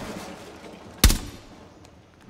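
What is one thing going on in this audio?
A single gunshot cracks sharply.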